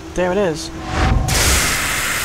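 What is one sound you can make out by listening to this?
A lightning spell blasts with a loud crackling roar.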